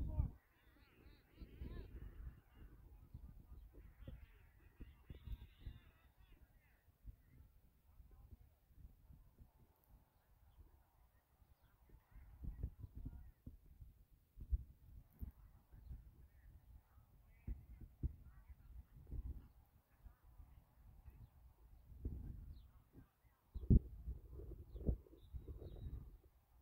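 Players shout to each other across an open field, far off.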